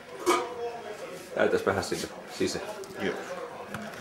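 A metal lid clatters on a pot.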